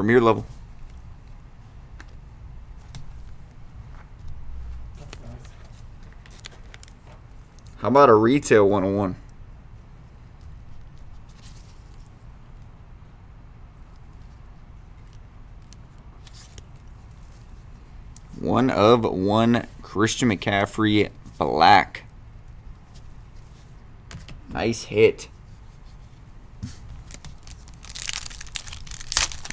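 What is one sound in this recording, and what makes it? Plastic card holders rustle and tap as they are handled.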